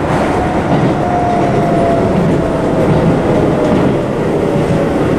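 A train's brakes whine with a slowly falling pitch.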